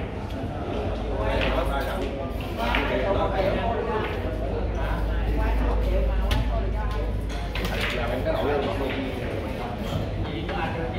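Several men chat in the background of a busy, echoing room.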